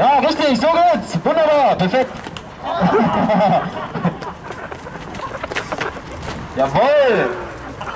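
Young men shout and laugh loudly outdoors.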